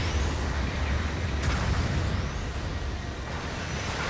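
A jet thruster roars.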